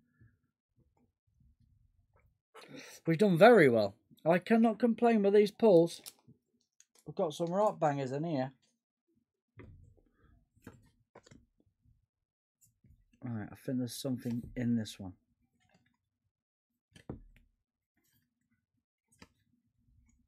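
Trading cards rustle and slide as hands shuffle them.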